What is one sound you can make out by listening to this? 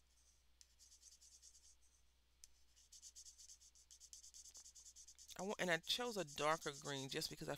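A marker tip scratches over paper in short strokes.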